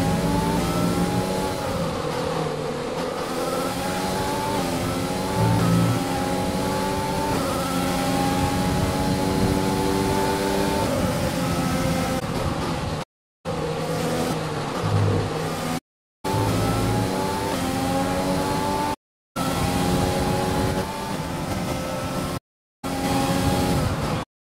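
A racing car engine roars, rising and falling in pitch as it shifts gears.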